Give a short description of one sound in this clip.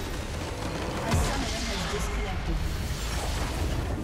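A structure collapses with a deep rumbling explosion.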